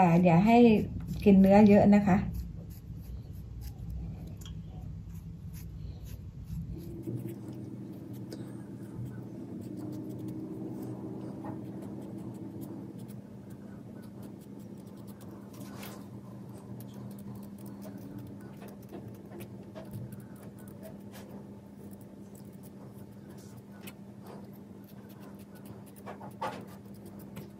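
A knife scrapes softly, peeling thin strips of rind from small fruits.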